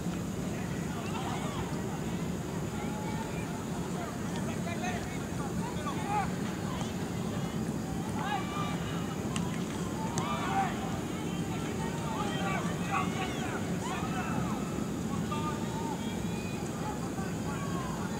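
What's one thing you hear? Young players shout to one another across an open field outdoors.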